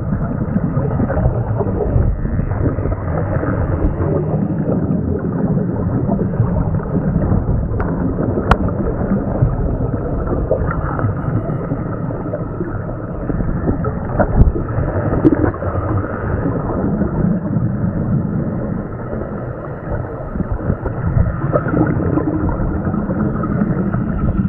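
Scuba bubbles rush and gurgle loudly underwater.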